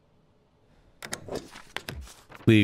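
A rubber stamp bar slides out with a mechanical clatter.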